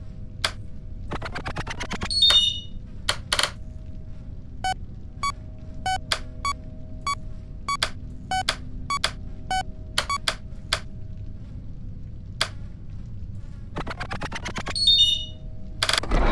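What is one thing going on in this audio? A game tone rises quickly in pitch.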